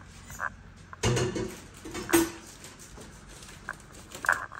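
Metal utensils clatter and knock against a pot close by.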